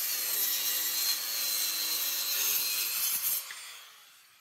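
A circular saw whines loudly as it cuts through wood.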